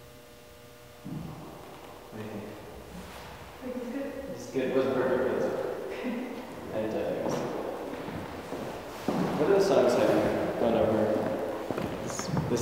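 A young man talks nearby in an echoing room.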